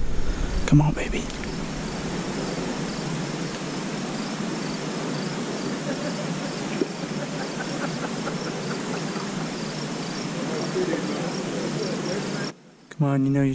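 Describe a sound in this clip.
Water rushes steadily past a moving boat.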